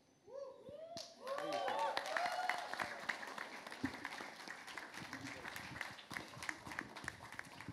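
People clap and applaud.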